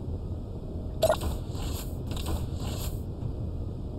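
A sliding door hisses open.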